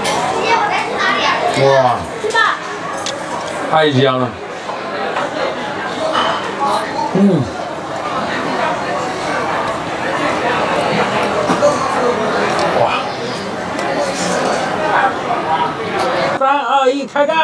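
A young man makes exaggerated chewing and eating sounds.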